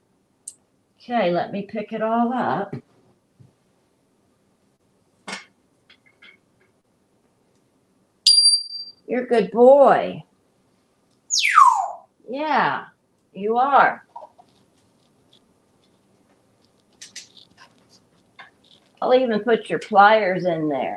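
A parrot chatters in a humanlike voice, close by.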